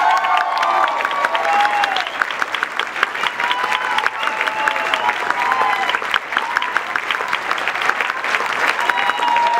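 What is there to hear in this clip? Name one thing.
An audience claps steadily in a room.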